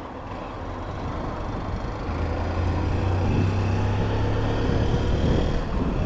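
A motorcycle engine hums and rises as the motorcycle speeds up.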